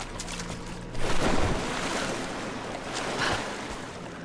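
Water splashes and sloshes.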